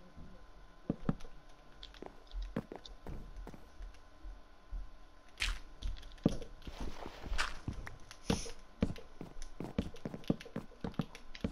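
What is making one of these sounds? Wooden blocks are placed with soft, quick knocks.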